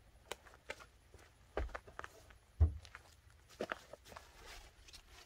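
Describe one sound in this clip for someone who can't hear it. A folded fabric panel flaps and rustles as it is twisted.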